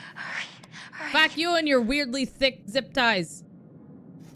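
A young woman groans and cries out in distress.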